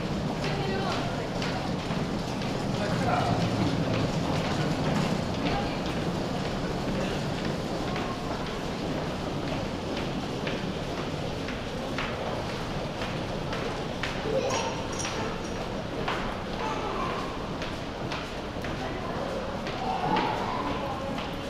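Footsteps tap on a hard floor in a large echoing passage.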